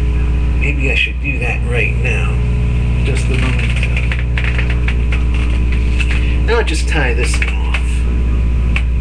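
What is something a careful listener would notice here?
A man speaks casually close to the microphone.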